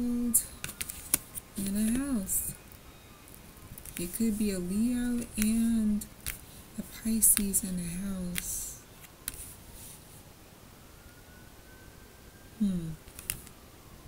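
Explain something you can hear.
A woman speaks clearly and calmly close to a microphone, in short phrases with pauses.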